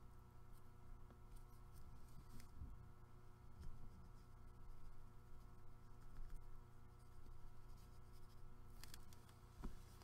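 A brush pen rubs softly on paper.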